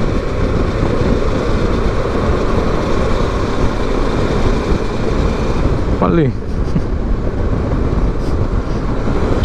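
Wind rushes and buffets loudly against the rider.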